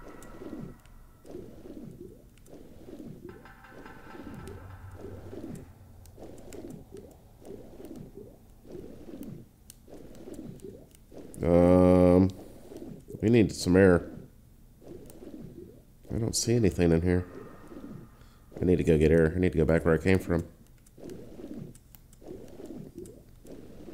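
A swimmer's strokes swish through water in steady, repeated pulses.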